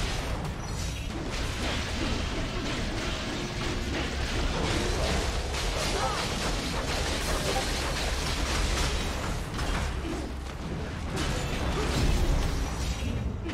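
Blades clash and slash in quick bursts.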